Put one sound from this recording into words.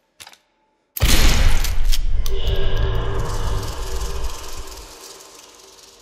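A gun fires a single loud shot that rings out and slowly fades.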